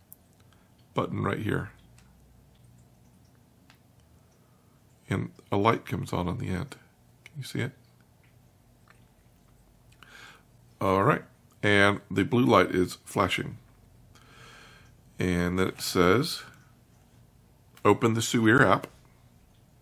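A middle-aged man speaks calmly into a nearby microphone, in short bursts with pauses.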